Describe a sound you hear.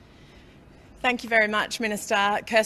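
A woman speaks steadily into a microphone.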